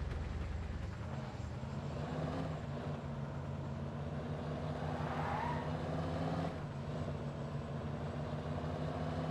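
A car engine revs up as the car speeds away.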